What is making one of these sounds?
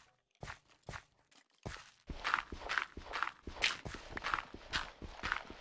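Footsteps crunch quickly and steadily on loose gravel.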